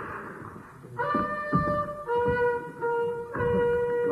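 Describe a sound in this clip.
A chorus of men sings loudly on a stage.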